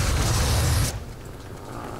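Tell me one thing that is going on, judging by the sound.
An explosion roars loudly, then cuts off.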